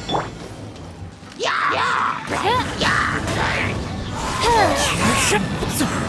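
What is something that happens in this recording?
Magic blasts and impacts crackle and boom in a fight.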